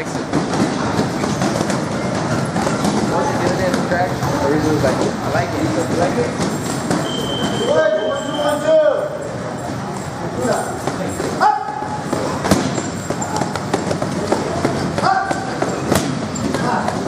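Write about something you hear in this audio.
Several men talk in the background.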